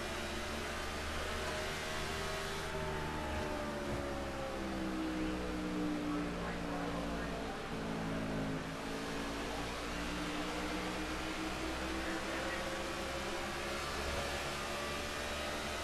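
A race car engine roars steadily at high speed, its pitch rising and falling gently.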